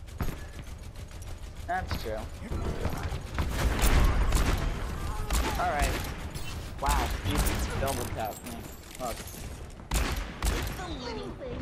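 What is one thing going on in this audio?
A revolver fires loud, sharp shots in quick bursts.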